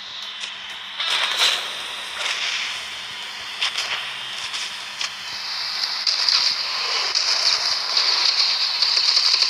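Explosions and fire blasts burst loudly.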